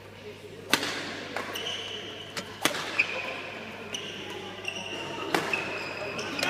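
Rackets strike a shuttlecock with sharp pops in a large echoing hall.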